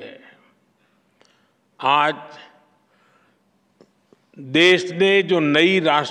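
An elderly man speaks slowly and with emphasis into a microphone.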